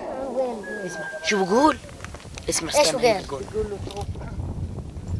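A teenage boy speaks with animation nearby.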